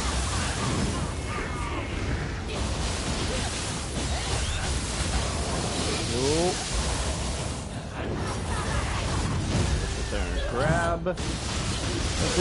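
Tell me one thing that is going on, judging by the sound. Magic blasts boom and crackle.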